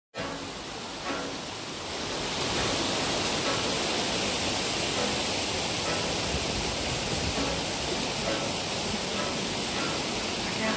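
Wind rushes steadily through the trees outdoors.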